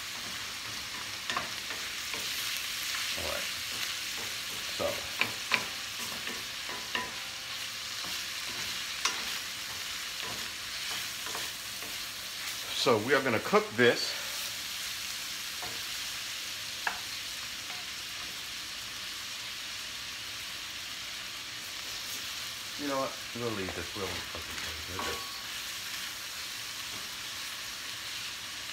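A wooden spoon scrapes and knocks against a metal pan.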